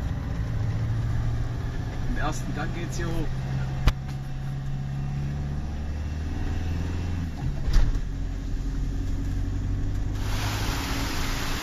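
A car engine hums steadily from inside the car, close by.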